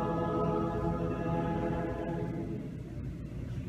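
A man chants in a low, sustained voice in an echoing room.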